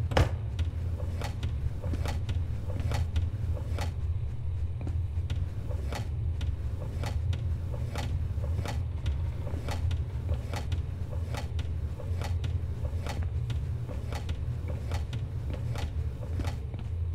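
Metal drawers slide and clunk open one after another.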